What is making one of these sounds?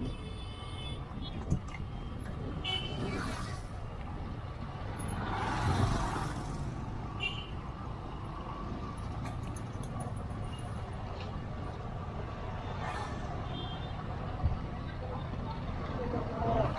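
Motorbike engines hum and buzz past on a busy street.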